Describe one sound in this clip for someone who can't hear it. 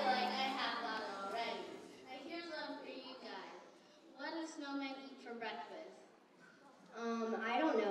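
A young boy speaks into a microphone, heard through loudspeakers.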